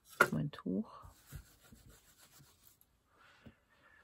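Tissue paper crinkles as hands crumple it.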